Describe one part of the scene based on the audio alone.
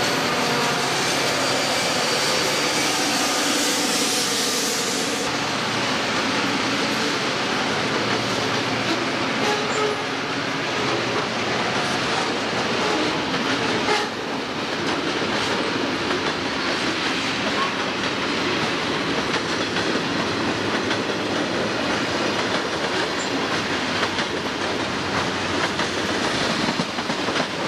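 Freight cars rattle and clack along the rails.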